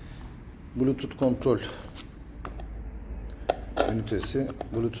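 A cardboard box rustles and taps as it is handled.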